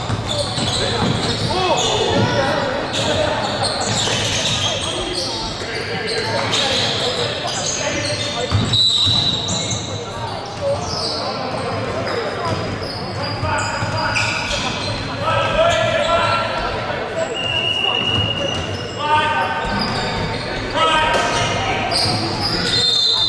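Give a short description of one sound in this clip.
Basketball shoes squeak sharply on a wooden court.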